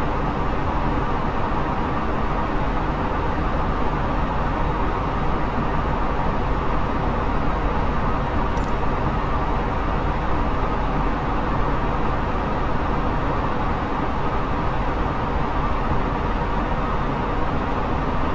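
Jet engines roar with a steady, even drone.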